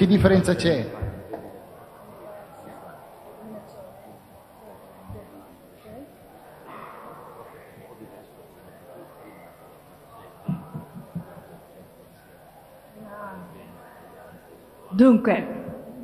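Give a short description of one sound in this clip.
A man talks quietly, faint and away from the microphone.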